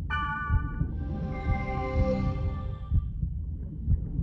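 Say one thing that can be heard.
A magical shimmering chime rings out and fades.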